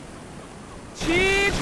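A seagull cries out loudly.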